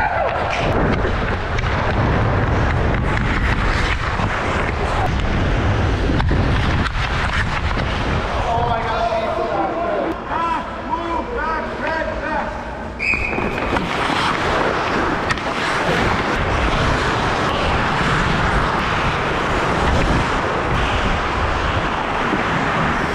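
A hockey stick taps a puck.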